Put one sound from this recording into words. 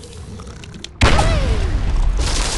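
A heavy object smashes into stone blocks with a loud crash.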